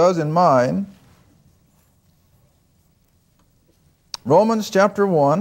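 An elderly man speaks calmly through a clip-on microphone, pausing between phrases.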